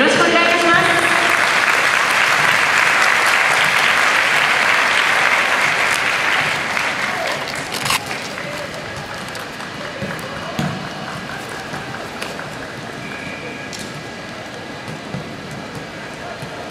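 A large crowd roars and cheers, then slowly quiets to a murmur.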